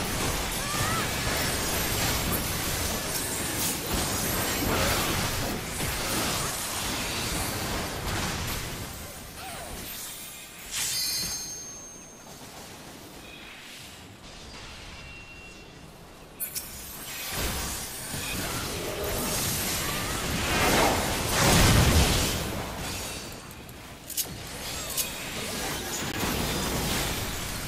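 Magic blasts and battle effects whoosh and crackle in a busy fight.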